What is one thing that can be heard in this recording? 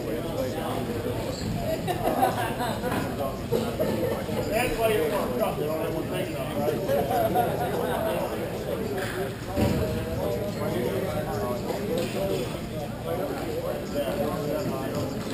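Distant men's voices echo faintly through a large hall.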